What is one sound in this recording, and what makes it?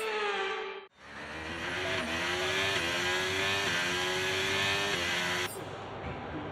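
A racing car engine revs up and rises in pitch.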